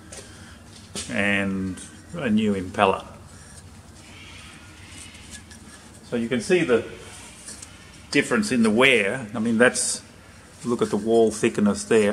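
A middle-aged man talks calmly close to the microphone, in short bursts.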